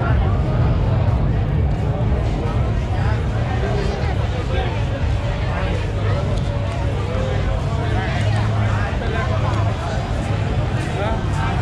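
A crowd chatters in a busy street outdoors.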